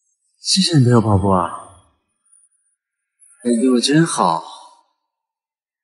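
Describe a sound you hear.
A young man speaks softly and warmly, close by.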